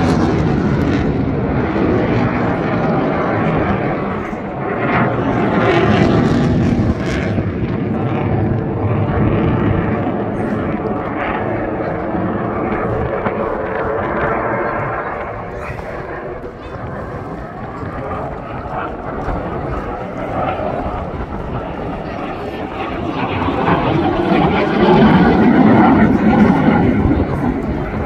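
A jet roars loudly overhead, swelling as it passes close.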